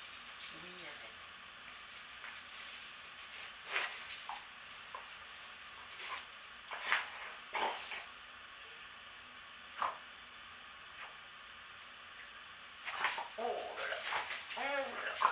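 Dog paws scuffle on a floor.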